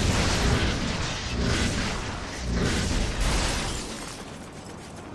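Loud roaring blasts rush and crackle in bursts.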